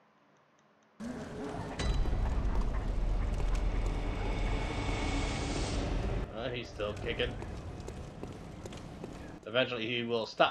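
Footsteps tread on cobblestones.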